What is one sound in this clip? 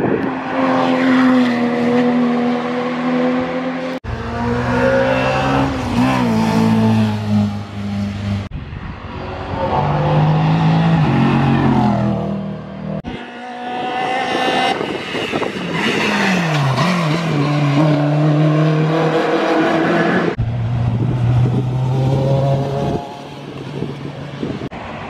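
Racing car engines roar loudly and rev up and down as cars speed past.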